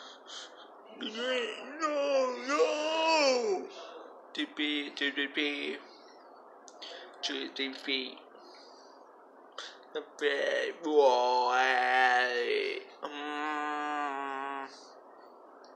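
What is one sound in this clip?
A young man sings loudly in a drawn-out voice.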